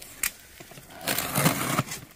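A utility knife slices through packing tape on a cardboard box.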